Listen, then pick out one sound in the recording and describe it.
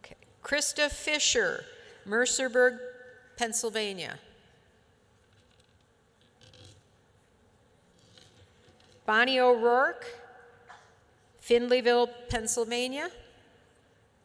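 An older woman speaks slowly and calmly into a microphone, pausing between phrases.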